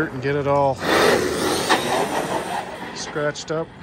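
Small tyres hiss on rough asphalt.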